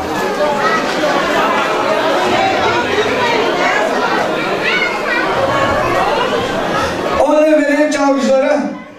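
A middle-aged man speaks with animation through a microphone and loudspeaker in a large echoing hall.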